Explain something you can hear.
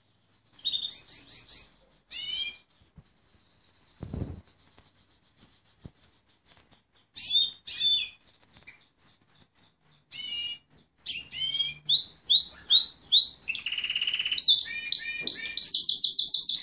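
A Fife Fancy canary sings a long, trilling song.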